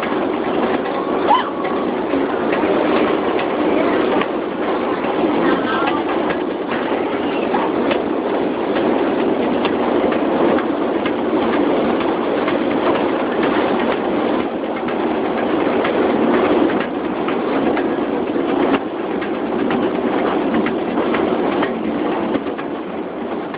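A metro train rumbles steadily along the tracks.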